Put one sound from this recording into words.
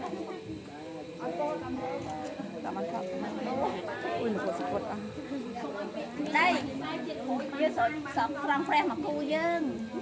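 Several adults chant together in unison nearby.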